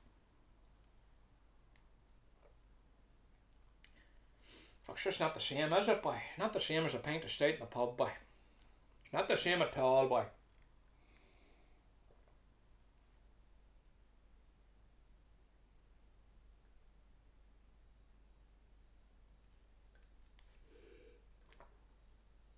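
A man sips and gulps a drink.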